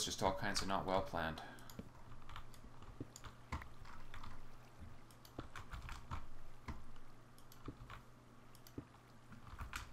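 Stone blocks are set down with short, soft thuds.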